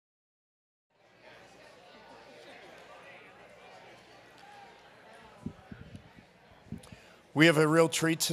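A crowd murmurs and chatters quietly.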